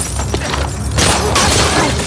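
A gunshot bangs and echoes.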